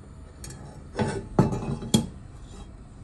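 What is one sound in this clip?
A metal pan clanks down onto a stove grate.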